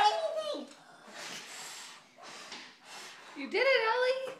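Young girls blow out candles with puffs of breath.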